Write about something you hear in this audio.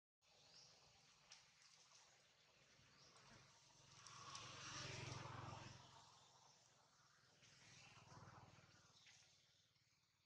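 Dry leaves rustle under small footsteps.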